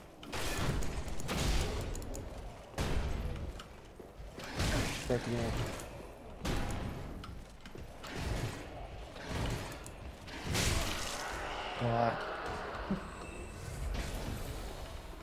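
Swords clash and strike in a fight, with heavy thuds.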